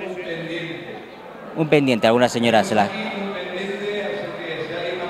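A crowd chatters in an echoing hall.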